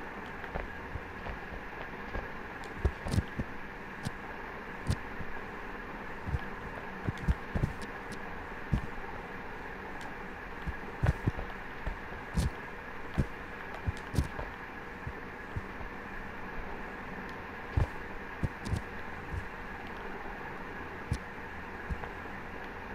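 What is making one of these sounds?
Soft thumps sound as a climber grabs onto rock, on and off.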